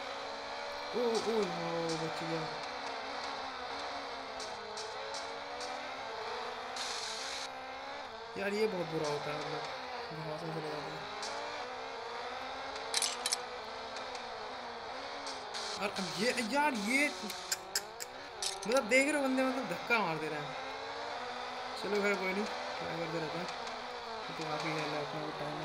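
Motorcycle engines whine and rev at high speed, rising and falling in pitch.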